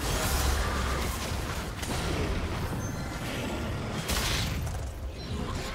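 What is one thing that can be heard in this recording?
Spell effects whoosh and crackle during a fight.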